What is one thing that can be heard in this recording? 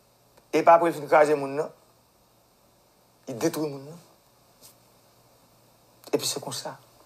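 A young man speaks calmly and closely, in short bursts with pauses.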